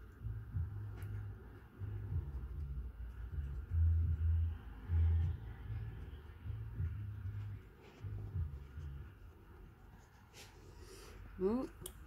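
A coin scratches at a card, softly and in short strokes.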